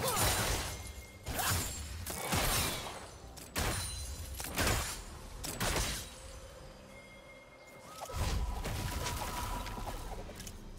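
Spell and weapon effects burst and clash in a fast fight.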